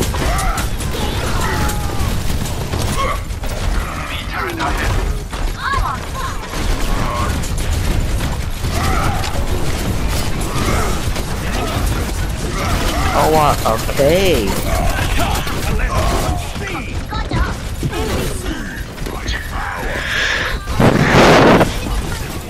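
Rapid gunfire crackles and booms in a video game.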